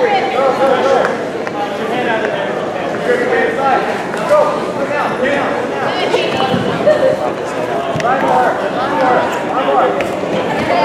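Two grapplers in cotton gis scuffle and thump on a foam mat.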